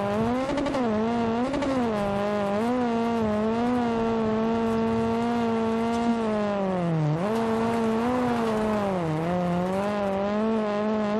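A rally car engine roars at high revs, its pitch dipping and rising as it shifts gears.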